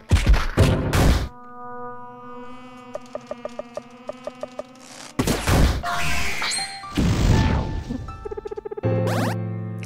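Video game battle sounds crash and clang in quick bursts.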